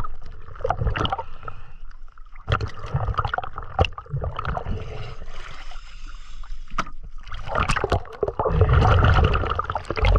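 Water splashes and sloshes as a diver breaks the surface.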